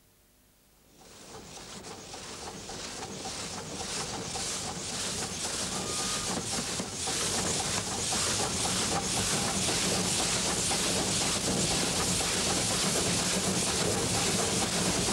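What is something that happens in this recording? A steam locomotive chugs closer, growing steadily louder.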